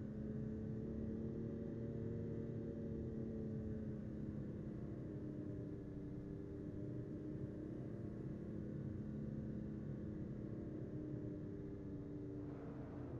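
A car engine hums steadily while driving at speed.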